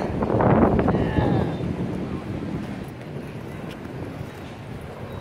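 Wind blows across an open outdoor space.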